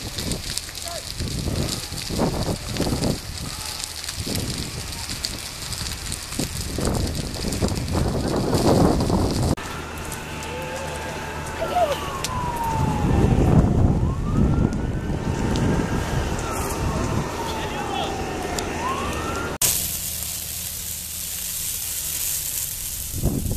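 Flames crackle and roar through dry brush.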